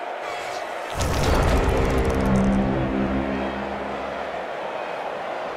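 A short game jingle sounds.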